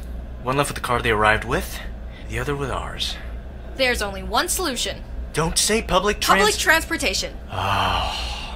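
A man speaks playfully.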